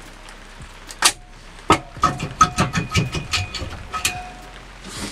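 Metal engine parts clink and clatter as they are handled.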